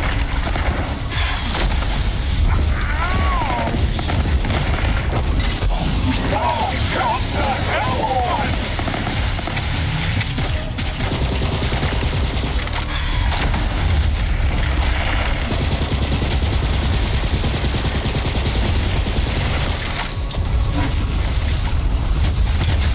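Guns fire rapidly in a video game.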